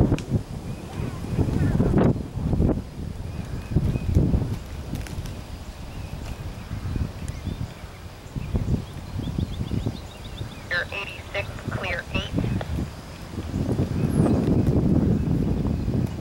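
A horse's hooves thud on grass at a canter.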